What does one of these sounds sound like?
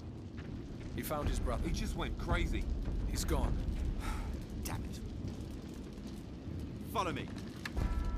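A man speaks calmly into a headset microphone.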